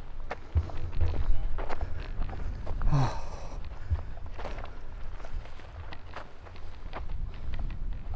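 Footsteps crunch on a dry dirt path.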